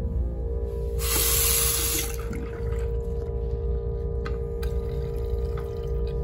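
Water splashes from a tap into a sink.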